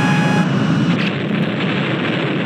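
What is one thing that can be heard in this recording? An explosion bursts with a boom.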